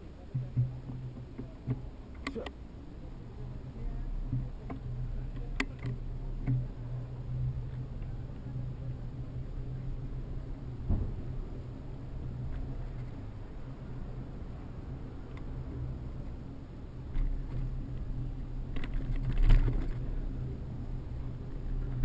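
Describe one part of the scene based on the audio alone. A bicycle rattles and clicks as it rides over a paved street.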